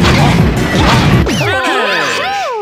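Heavy spiked rollers rumble as they roll.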